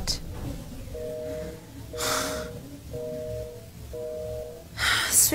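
A phone ringing tone sounds through a handset in short repeated pairs.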